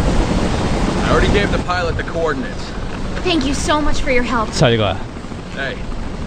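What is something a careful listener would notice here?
A young woman speaks softly and earnestly.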